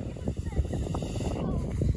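A snowboard scrapes over snow.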